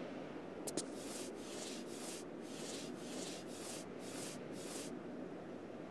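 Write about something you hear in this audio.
Footsteps shuffle in a rhythm.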